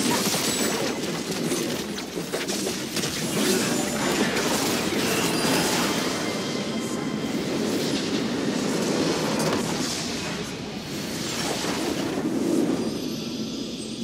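Magic spells blast and crackle in a busy game battle.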